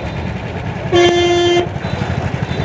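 A vehicle horn honks loudly once.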